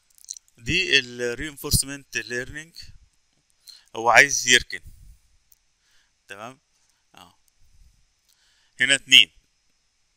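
A man talks calmly into a microphone, in short bursts with pauses.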